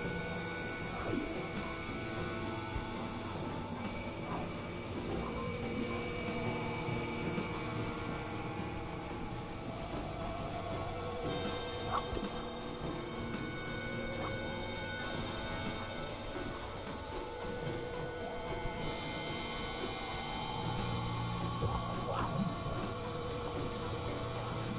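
A synthesizer plays steady, droning notes that shift slowly.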